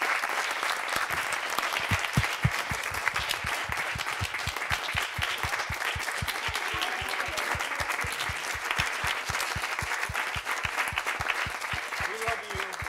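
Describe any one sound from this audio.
An audience claps and cheers.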